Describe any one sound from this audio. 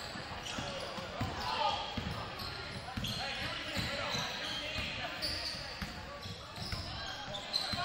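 A basketball bounces on the court as a player dribbles.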